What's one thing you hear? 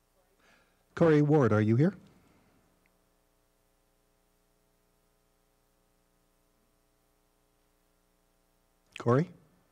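An adult speaks briefly through a microphone.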